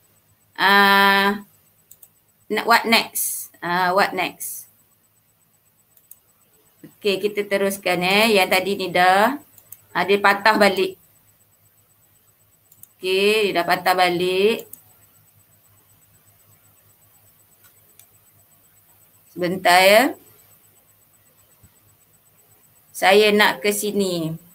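A woman speaks calmly and warmly through a microphone in short phrases.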